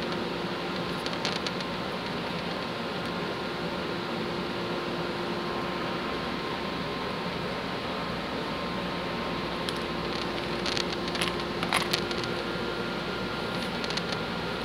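Small wooden pieces click and tap onto a table.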